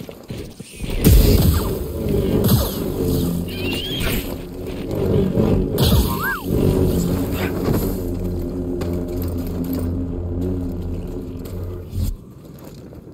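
A lightsaber hums steadily and swooshes.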